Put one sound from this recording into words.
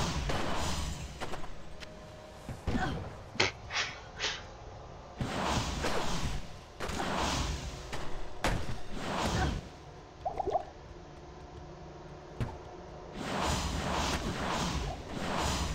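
Magic spells crackle and burst.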